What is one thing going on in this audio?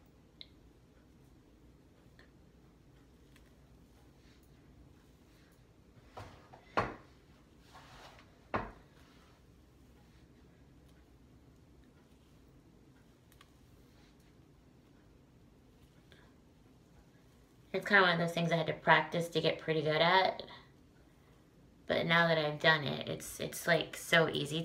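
Hands rustle and scrunch through curly hair.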